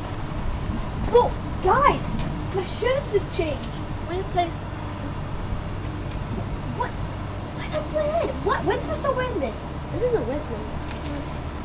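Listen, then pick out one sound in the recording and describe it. Young children talk and exclaim close by outdoors.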